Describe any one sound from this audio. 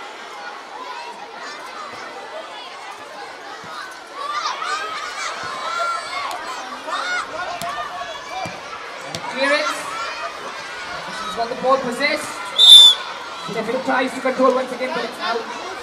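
A crowd of children chatters and shouts outdoors.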